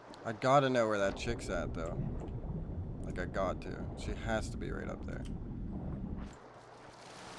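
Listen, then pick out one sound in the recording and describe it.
A low muffled rumble sounds underwater.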